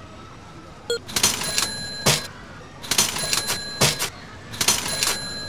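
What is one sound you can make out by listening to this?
Crackling game sound effects burst repeatedly.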